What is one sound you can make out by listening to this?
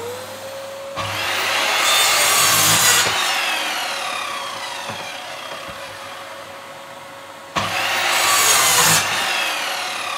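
A power saw cuts with a loud screech, twice.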